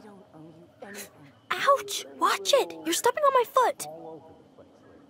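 A young girl speaks quietly and tensely.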